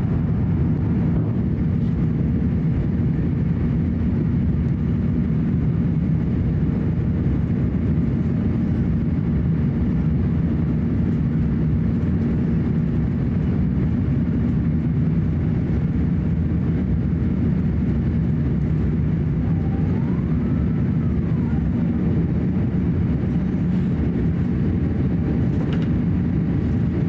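A jet engine roars steadily, heard from inside the cabin.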